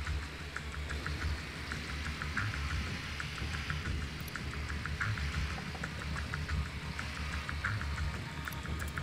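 A small drone's rotors buzz steadily.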